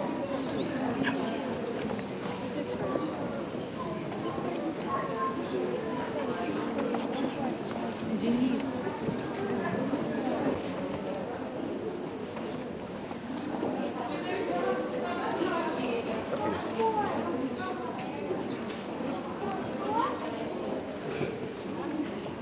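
A crowd of women and children murmurs and chatters nearby in an echoing hall.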